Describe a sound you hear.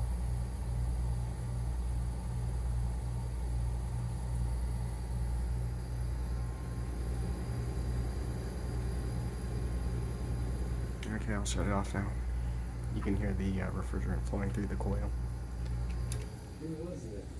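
A ventilation fan hums low and steadily through a vent.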